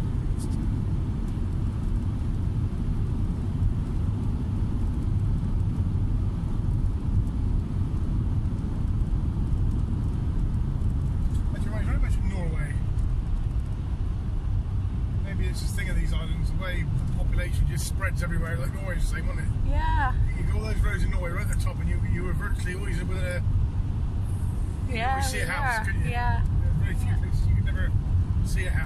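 A car drives along with a steady, low engine and road rumble.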